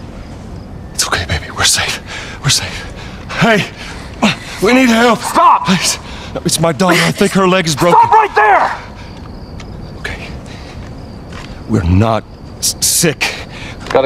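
A man speaks urgently.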